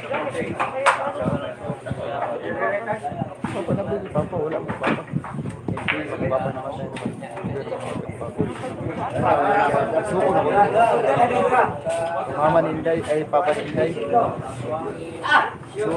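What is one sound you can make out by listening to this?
Several men and women chat nearby.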